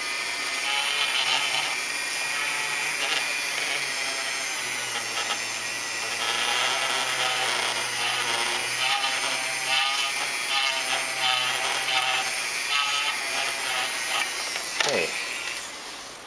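A small rotary tool whirs steadily, then winds down.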